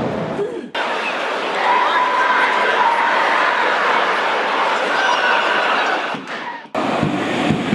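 A large stadium crowd murmurs and chants in the distance.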